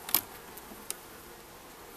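Fingers tap on a wooden hive frame.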